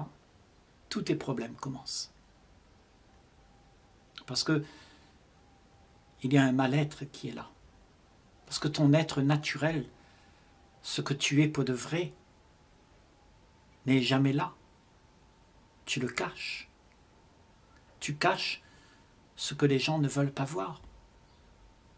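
An elderly man speaks calmly and slowly, close to the microphone, with pauses between phrases.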